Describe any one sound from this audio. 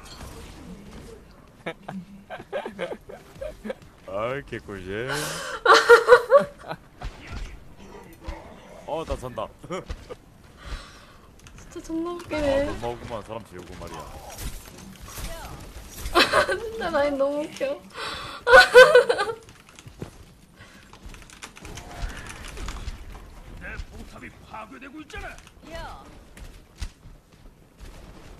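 A young woman talks and laughs with animation close to a microphone.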